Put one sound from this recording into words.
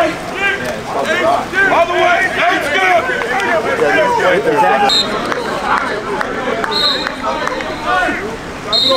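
Young men shout and call out outdoors.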